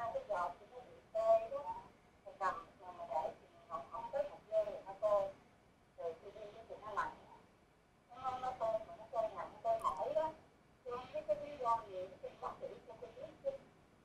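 A woman speaks calmly and clearly through a microphone.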